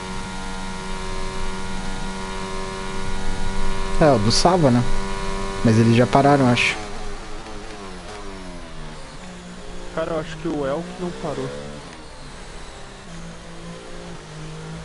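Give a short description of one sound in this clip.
A racing car engine whines at high revs, dropping sharply in pitch as it shifts down through the gears.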